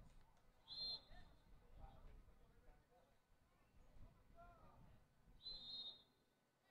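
Men shout to each other in the distance outdoors.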